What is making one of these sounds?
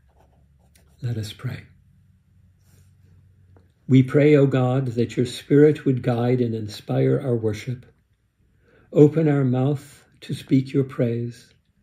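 An elderly man speaks calmly and close by.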